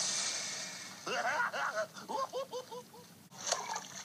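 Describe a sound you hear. A small creature chatters in a high, cheerful cartoon voice.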